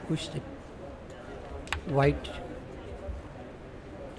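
Game pieces click sharply against each other on a wooden board.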